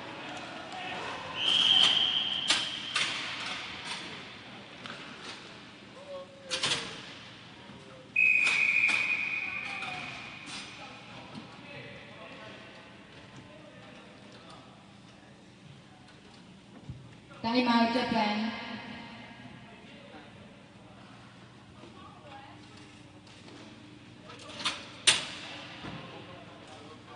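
Hockey sticks clack against a ball and the hard floor.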